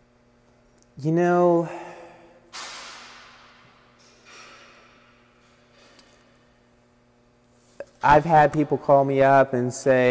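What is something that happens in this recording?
A young man speaks calmly and close to a microphone, in a room with a slight echo.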